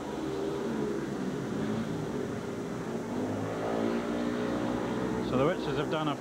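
Motorcycle engines roar and whine as bikes race around a track.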